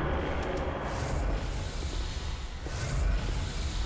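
A fireball roars and crackles.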